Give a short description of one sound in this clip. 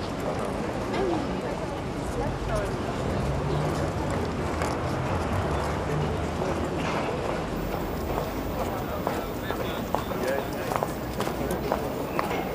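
Footsteps tap on paved ground close by.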